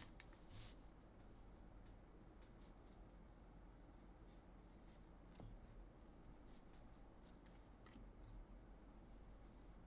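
Trading cards shuffle and slide against each other.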